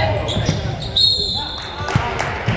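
A man's whistle blows shrilly.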